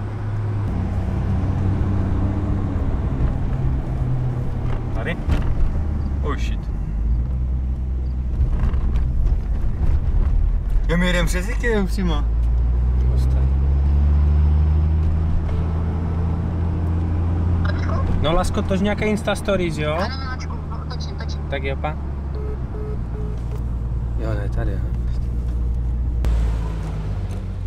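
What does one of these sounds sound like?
A car engine hums and revs steadily up close.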